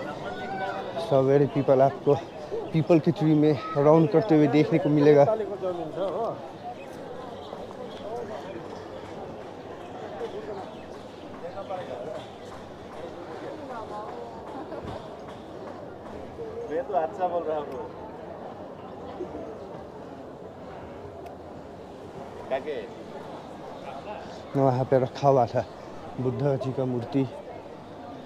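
A man talks close by with animation.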